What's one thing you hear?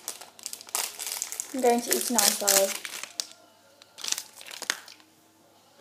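A plastic wrapper crinkles and tears close by.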